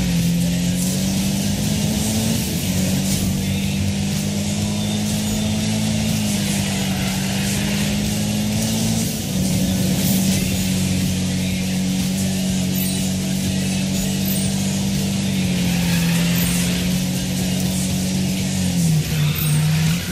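A car engine roars steadily at high revs, shifting pitch now and then.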